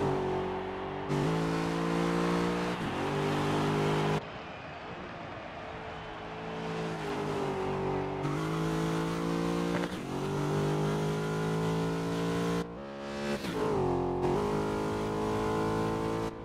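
A racing car engine roars at high revs, rising and dropping as it shifts gears.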